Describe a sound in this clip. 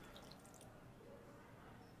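A thick drink pours into a plastic cup.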